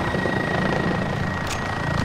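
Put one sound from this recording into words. A helicopter engine and rotor roar steadily in flight.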